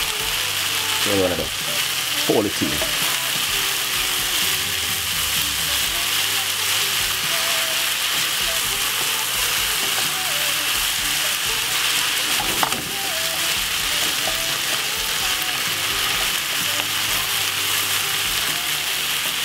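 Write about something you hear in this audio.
A wooden spoon scrapes and stirs vegetables in a pan.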